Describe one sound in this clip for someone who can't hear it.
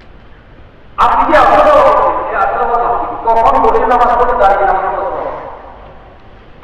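A man chants loudly into a microphone, heard through loudspeakers with a ringing echo.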